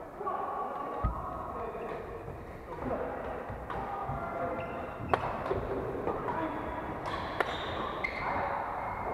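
Shuttlecocks are struck with rackets in a large echoing hall, with sharp pops now and then.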